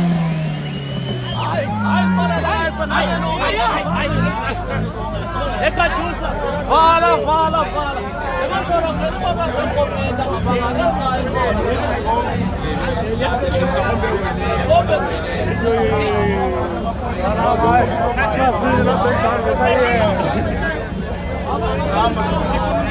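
A crowd of men and women talk over one another with animation, close by, outdoors.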